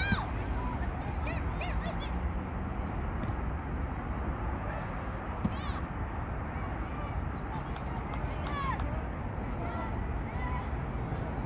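Young players shout to each other in the distance on an open field.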